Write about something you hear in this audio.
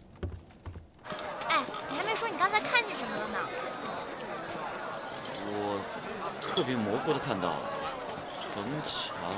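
A crowd chatters in a busy outdoor street.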